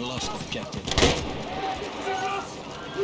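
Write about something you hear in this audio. A submachine gun fires.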